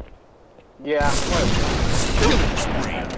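A sniper rifle fires a shot in a video game.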